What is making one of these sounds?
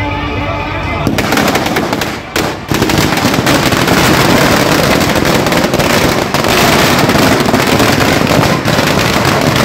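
A large bonfire roars and crackles.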